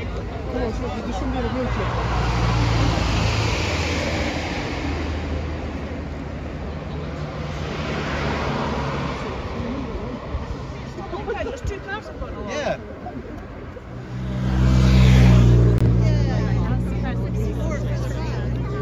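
A crowd of people murmurs and chatters outdoors.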